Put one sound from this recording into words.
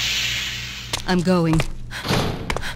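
A young woman shouts defiantly.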